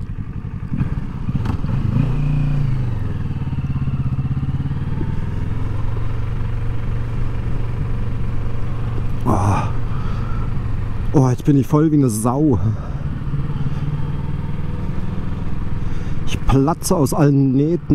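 A motorcycle engine revs up and down sharply as the bike rides off.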